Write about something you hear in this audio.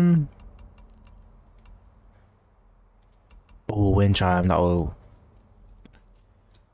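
Soft interface clicks sound as menu options are selected.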